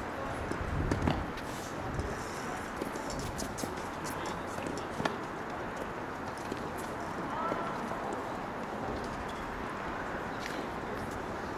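A tennis ball is hit back and forth with sharp pops of the racket.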